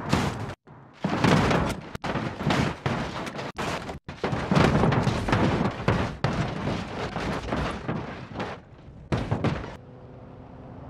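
A vehicle crashes and breaks apart with loud bangs and crunching.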